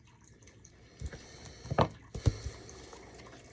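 Cards tap and slide on a wooden table.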